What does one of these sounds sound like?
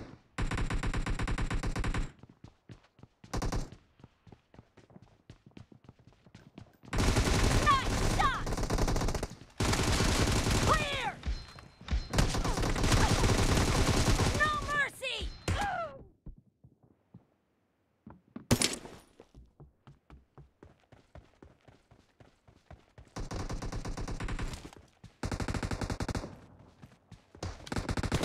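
Automatic rifle fire rattles in rapid, loud bursts.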